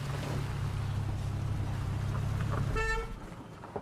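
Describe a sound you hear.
A car engine idles and then cuts off.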